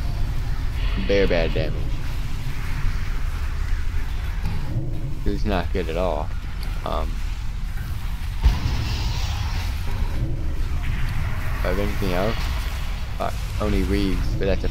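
A young man talks casually and animatedly into a nearby microphone.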